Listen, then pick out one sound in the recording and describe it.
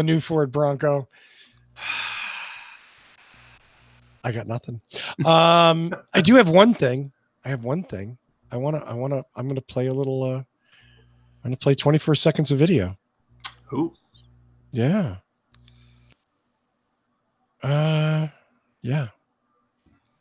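An older man speaks calmly into a close microphone over an online call.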